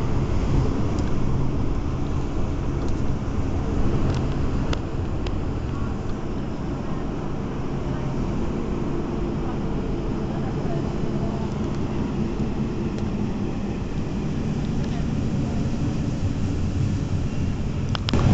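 Train wheels clack now and then over rail joints.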